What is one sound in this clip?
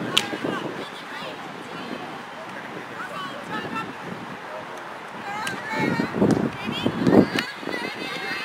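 A hockey stick strikes a ball with a sharp crack.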